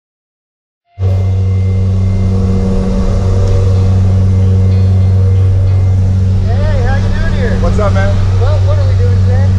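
A plane's propeller engine drones loudly and steadily.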